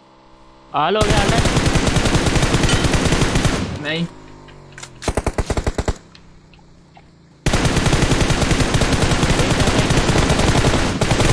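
Rapid automatic gunfire rattles loudly in quick bursts.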